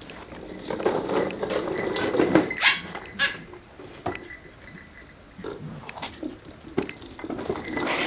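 Plastic toy wheels rattle and scrape over paving stones.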